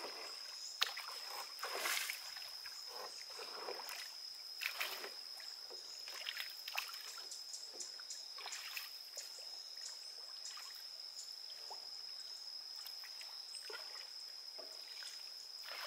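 A wooden oar splashes and swishes through water in slow strokes.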